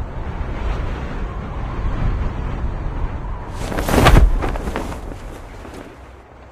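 Wind rushes loudly.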